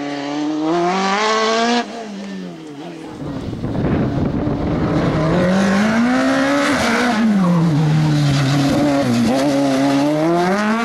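A racing car engine roars close by, its pitch climbing and dropping as it revs and shifts gears.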